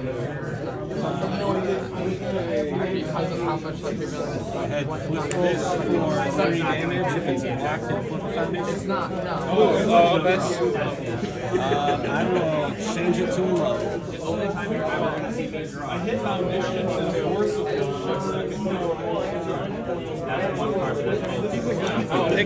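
Playing cards slide and tap softly on a mat.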